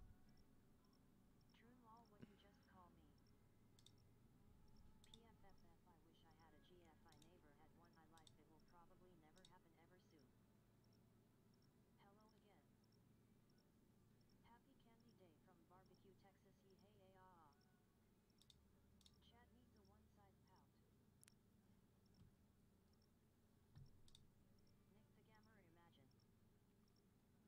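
A young woman speaks softly and playfully into a microphone.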